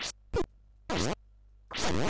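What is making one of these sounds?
A sword swishes through the air with a short electronic sound.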